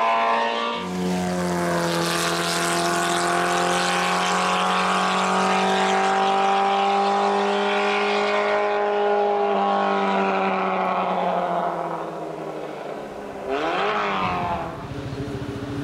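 A car engine roars loudly as the car accelerates up the road, then fades as it drives away.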